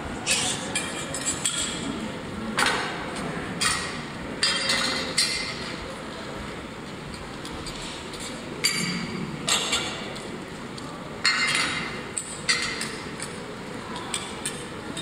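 Grains rustle and scrape as they are stirred in a metal pan.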